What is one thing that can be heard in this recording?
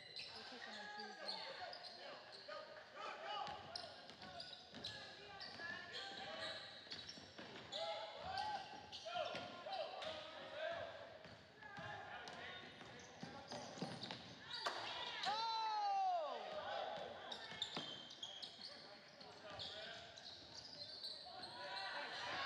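A basketball thumps as it is dribbled.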